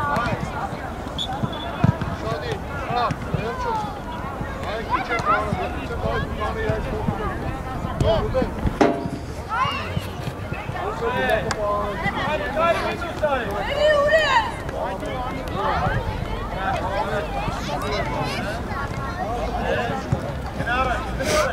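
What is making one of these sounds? Young women shout to each other outdoors across an open field.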